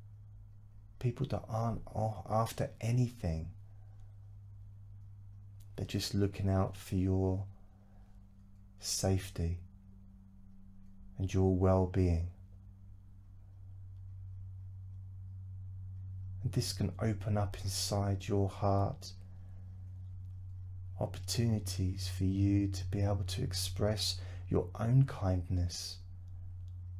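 A man speaks calmly and slowly into a nearby microphone, with long pauses.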